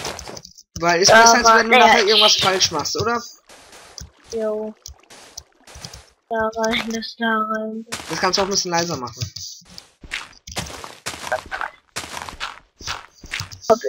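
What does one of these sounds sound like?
Blocks of earth crunch as they are dug out, in quick repeated thuds.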